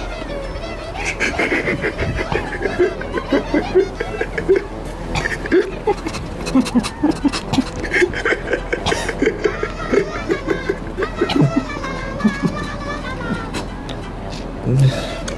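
A young man laughs and talks close by.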